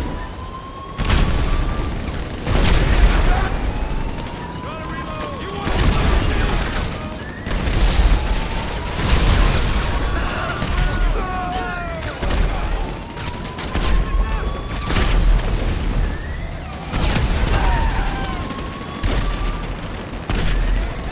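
Loud explosions boom and rumble again and again.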